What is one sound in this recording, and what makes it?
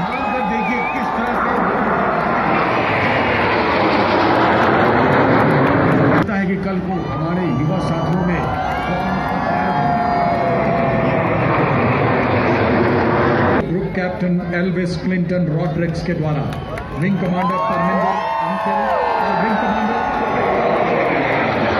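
Jet planes roar overhead and fade.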